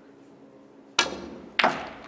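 A snooker cue strikes a ball with a sharp click.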